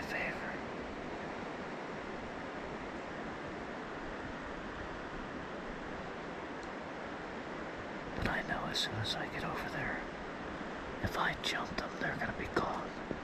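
A small stream trickles steadily nearby.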